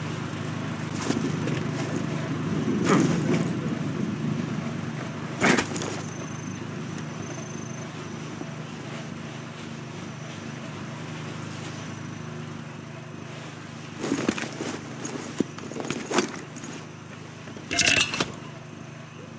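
Footsteps thud softly on wooden planks.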